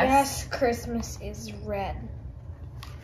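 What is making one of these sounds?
A woman reads aloud calmly and close by.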